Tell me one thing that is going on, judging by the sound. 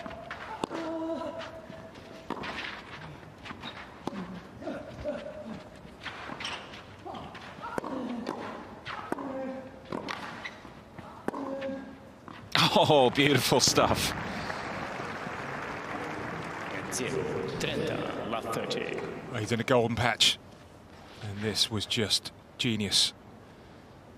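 A tennis ball is struck back and forth with rackets.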